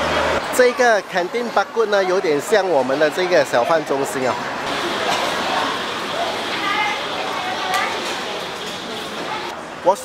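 A crowd of diners chatters in the background.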